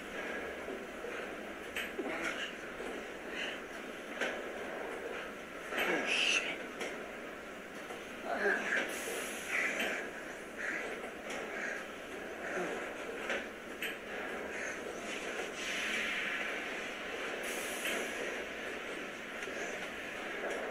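A young man groans and cries out in pain, close by.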